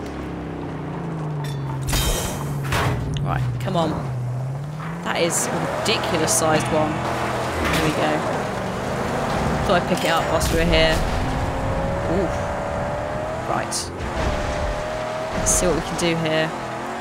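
A car engine roars and revs as it drives over rough ground.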